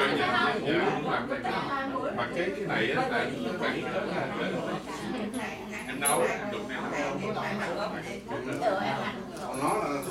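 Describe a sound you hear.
Women chat and laugh together close by.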